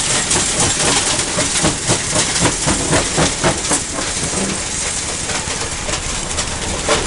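Rocks clatter and knock against a steel hopper.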